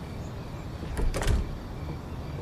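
A door opens and bangs.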